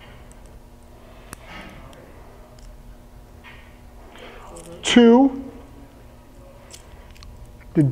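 A metal chain collar jingles softly.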